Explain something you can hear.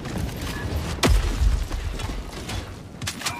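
A loud blast booms and rumbles.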